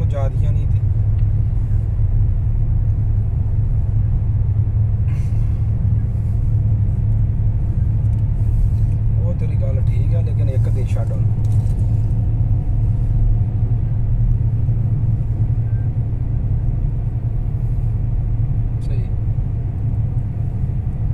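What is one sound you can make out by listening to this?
A car engine hums low and steady from inside the moving car.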